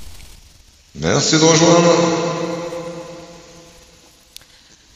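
A man sings into a microphone, holding long notes.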